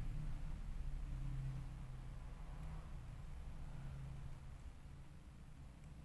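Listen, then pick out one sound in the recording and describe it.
Metal tweezers tap and scrape against a small plastic key switch.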